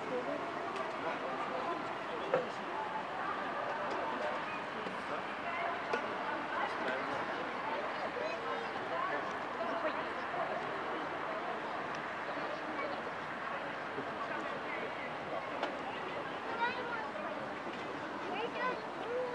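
A crowd of men and women chat in a busy murmur outdoors.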